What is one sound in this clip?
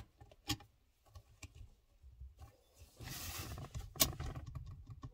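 Small parts click and knock against metal.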